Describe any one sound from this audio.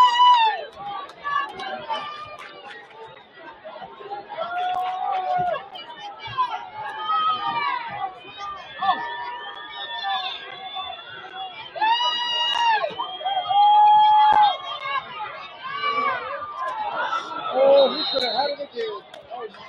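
A crowd cheers and yells from the stands outdoors.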